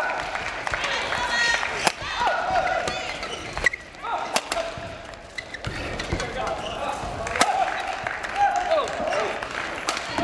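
Rackets strike a shuttlecock back and forth in a quick rally.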